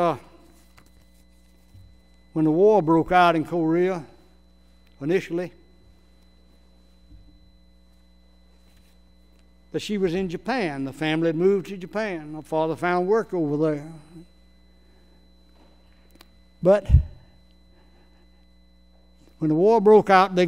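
An elderly man speaks slowly and calmly through a microphone, with long pauses, in an echoing hall.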